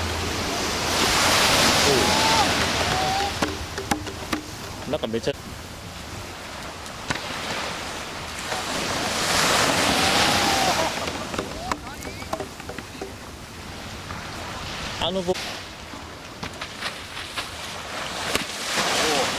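Waves crash and wash up on a shore.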